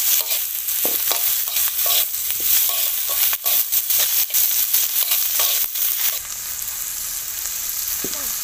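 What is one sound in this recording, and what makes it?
Vegetables sizzle loudly in a hot wok.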